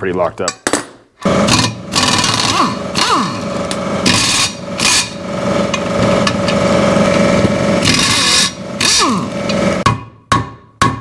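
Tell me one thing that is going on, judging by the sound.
An impact driver whirs and rattles in bursts.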